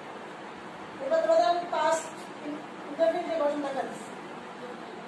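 A woman speaks in a raised teaching voice close by.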